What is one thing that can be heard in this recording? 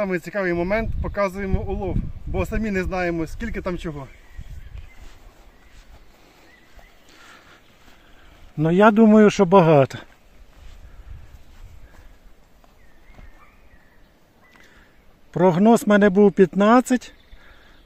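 A young man speaks calmly and close by, outdoors.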